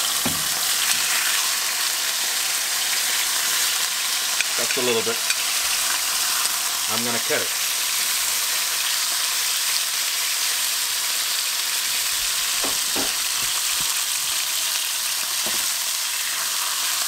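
Meat sizzles in a hot pan.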